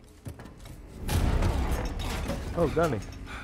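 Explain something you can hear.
A soldier drops down and lands with a heavy thud on a metal floor.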